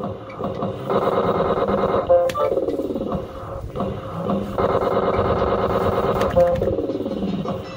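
Slot machine reels spin and clunk to a stop.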